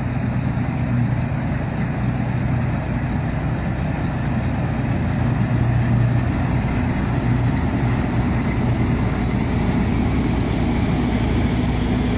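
A combine harvester's header cuts through standing wheat.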